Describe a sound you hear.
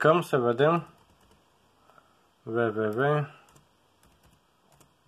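Fingers tap softly on laptop keys.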